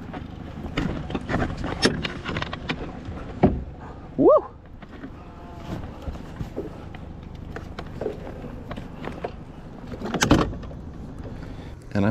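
Water laps against the side of a small boat.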